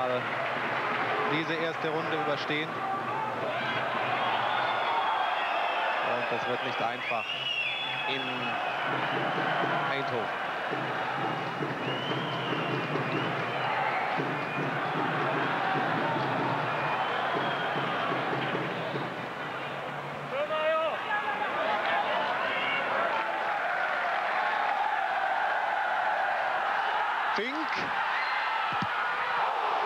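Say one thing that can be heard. A crowd murmurs and cheers in an open stadium.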